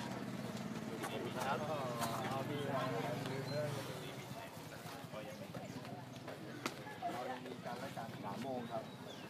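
Several men talk over each other outdoors.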